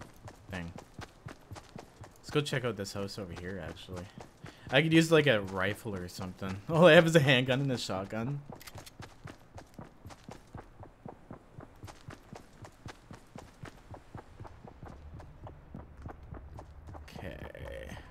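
Footsteps patter quickly and steadily on grass and wooden floors.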